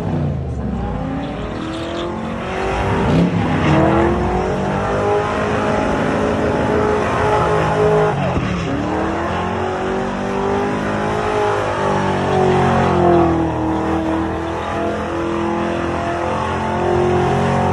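Tyres squeal on pavement as a car spins.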